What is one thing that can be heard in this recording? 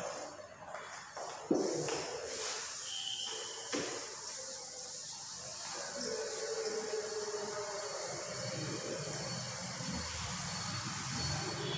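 A duster rubs and swishes across a chalkboard.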